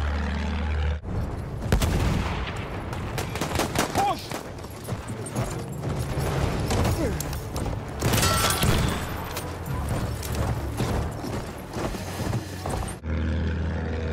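Horse hooves gallop over dirt.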